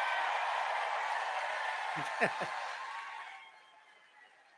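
A large crowd cheers and applauds in a big echoing hall, then fades.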